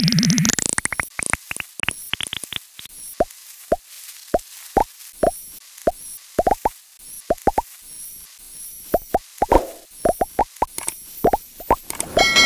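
Short rising electronic blips sound again and again as a game character gobbles up pickups.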